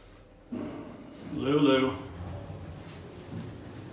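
Metal elevator doors slide open.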